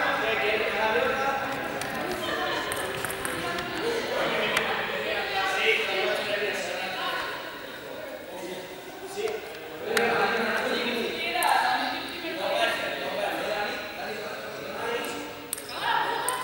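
Several young people talk and call out in a large echoing hall.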